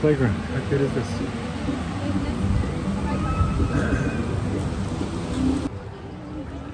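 Children play and chatter nearby outdoors.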